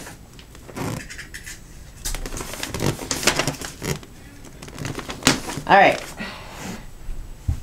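Wrapping paper rustles and crinkles as a present is handled.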